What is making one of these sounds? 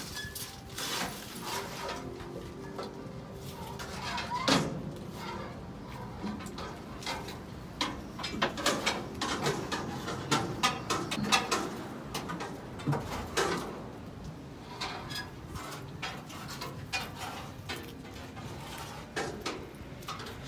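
Metal parts of a garbage truck clank and rattle.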